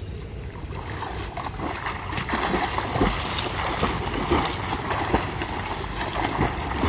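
A swimmer's arms splash rhythmically through the water.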